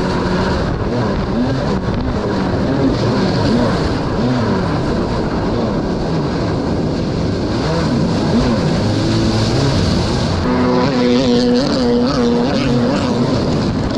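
A jet ski engine whines and revs up and down.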